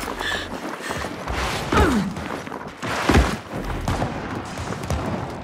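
Heavy footsteps thud quickly on stone and gravel.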